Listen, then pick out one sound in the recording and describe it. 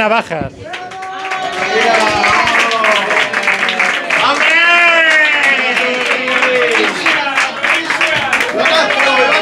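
A crowd claps and cheers in a small room.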